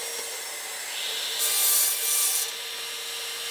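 A power saw whirs as it cuts through a piece of wood.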